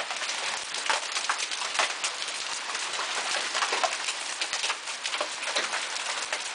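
Hail patters and clatters steadily on the ground outdoors.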